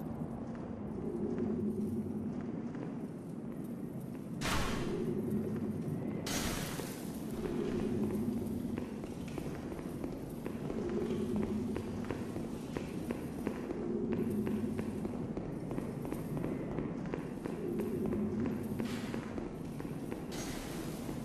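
Armoured footsteps run quickly over stone.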